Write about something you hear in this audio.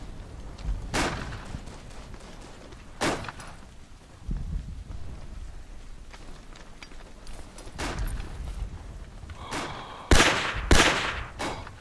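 A rifle fires several sharp, loud shots, each followed by a short echo.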